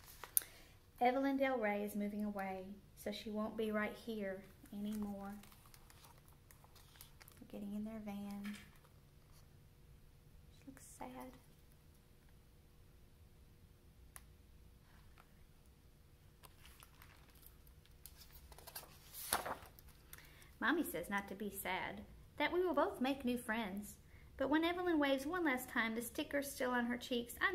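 A woman reads aloud expressively, close to a microphone.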